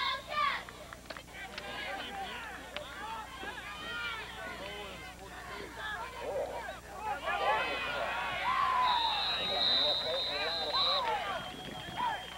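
A crowd of spectators nearby talks and cheers outdoors.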